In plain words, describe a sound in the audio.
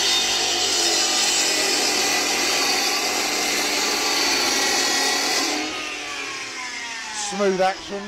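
A power cut-off saw whines loudly, then winds down.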